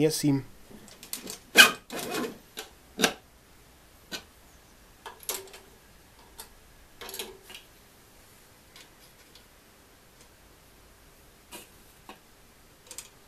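Small metal parts click and tap sharply nearby.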